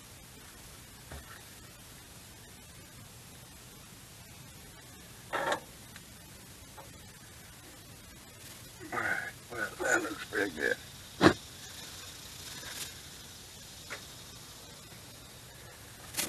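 A cloth rubs against metal.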